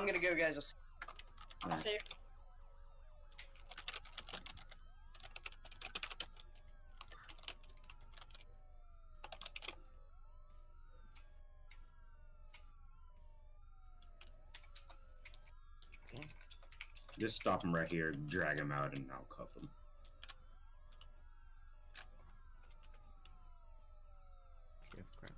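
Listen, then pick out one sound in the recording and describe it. A siren wails up and down.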